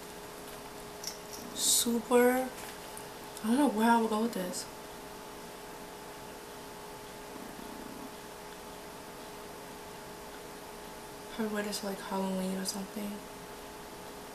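A young woman speaks briefly and softly close by.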